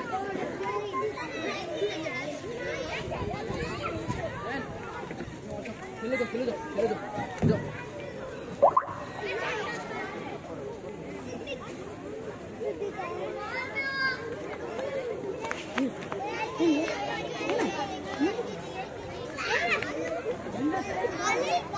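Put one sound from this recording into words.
A crowd of men, women and children chatter and call out outdoors.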